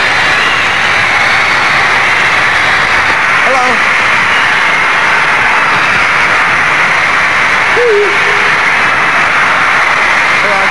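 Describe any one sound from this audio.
A large crowd of young girls screams loudly and steadily.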